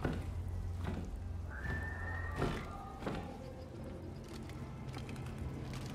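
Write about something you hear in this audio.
A wooden lid creaks open.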